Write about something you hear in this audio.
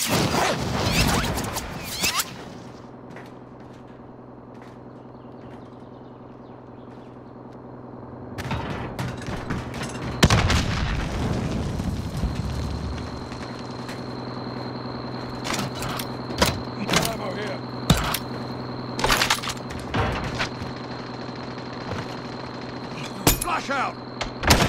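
Footsteps clang on a metal roof.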